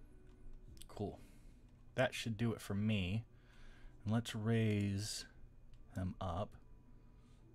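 A man speaks close to a microphone in short calm bursts.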